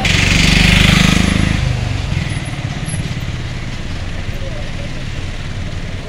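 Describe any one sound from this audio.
A diesel minibus drives past close by.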